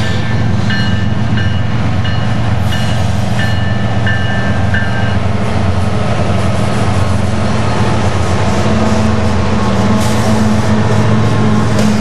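Diesel-electric freight locomotives rumble past close by.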